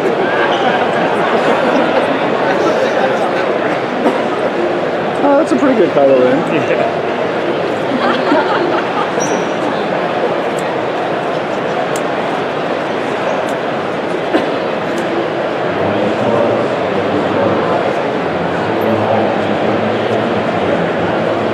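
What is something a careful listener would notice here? A large crowd chatters all around in a big echoing hall.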